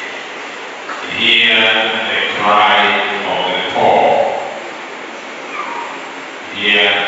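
A man speaks with emphasis into a microphone, heard through loudspeakers in an echoing hall.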